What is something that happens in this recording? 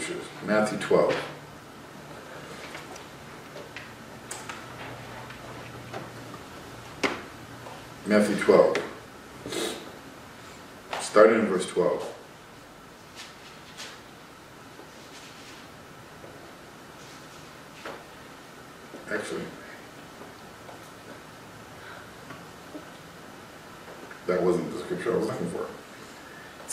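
A man speaks calmly into a close microphone in short bursts.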